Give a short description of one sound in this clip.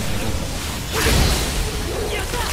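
A blade slashes into flesh with a heavy thud.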